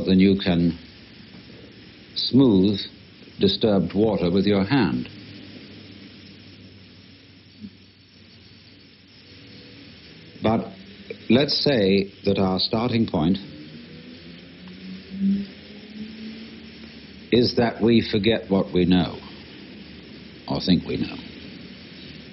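A man speaks calmly, with long pauses.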